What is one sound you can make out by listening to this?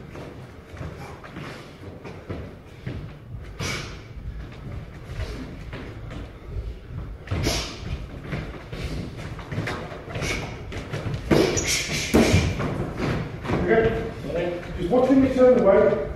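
Boxing gloves thud against pads in a large echoing hall.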